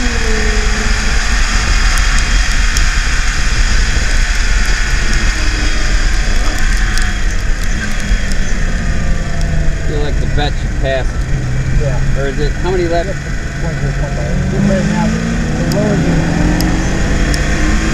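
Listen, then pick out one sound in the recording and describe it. A car engine roars and revs up and down at speed.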